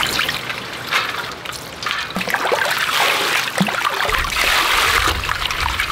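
Water pours and splashes from a scoop.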